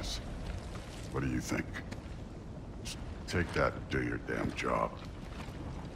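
A deep-voiced man speaks gruffly, close by.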